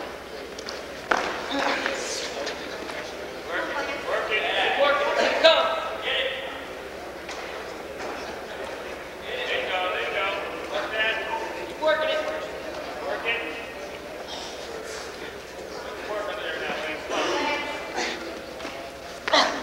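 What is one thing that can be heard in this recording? A crowd of people shout and cheer in a large echoing hall.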